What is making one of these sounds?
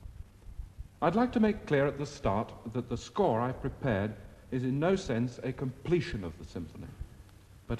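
A man speaks calmly through an old radio loudspeaker.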